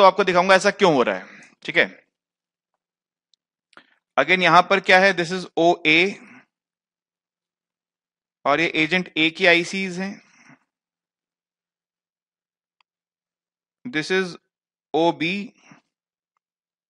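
A man lectures calmly into a headset microphone, in bursts with pauses.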